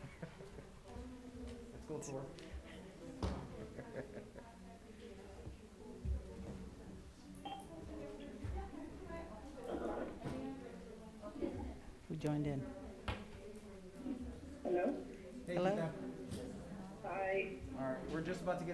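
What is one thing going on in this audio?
A man and a woman talk quietly nearby.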